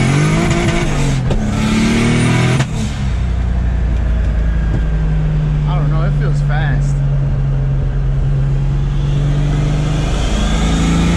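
A car engine revs hard and drops as gears shift.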